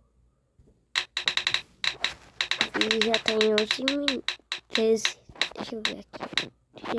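A spinning prize wheel ticks rapidly.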